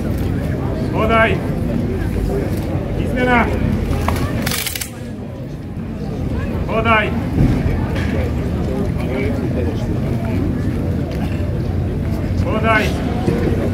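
Young men shout sharp drill cries in unison, loud and outdoors.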